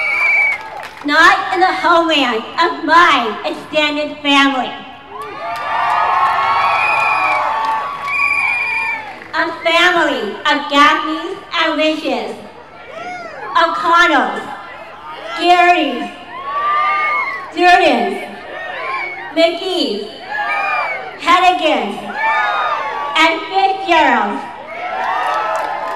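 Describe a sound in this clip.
A woman speaks with passion through a loudspeaker.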